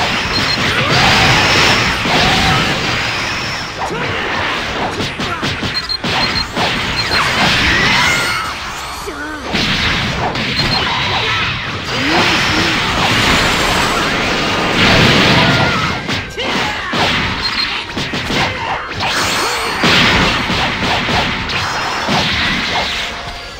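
Game energy blasts whoosh and explode.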